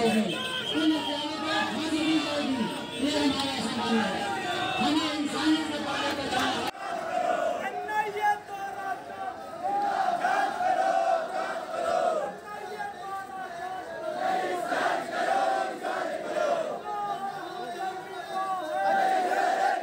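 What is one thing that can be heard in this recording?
A large crowd of men chants slogans loudly outdoors.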